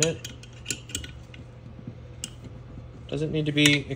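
A ratcheting wrench clicks as it tightens a bolt on a metal fixture.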